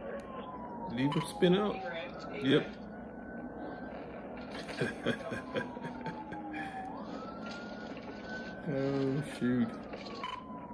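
A man talks and laughs through a microphone.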